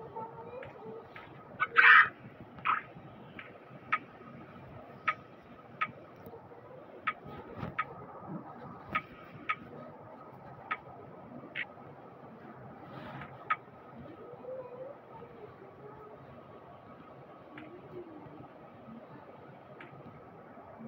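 Short soft clicks sound now and then as game menus open and close.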